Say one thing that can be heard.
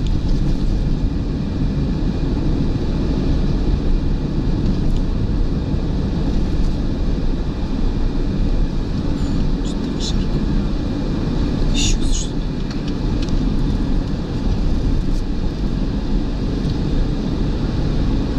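Wind and tyre noise roar steadily inside a moving car.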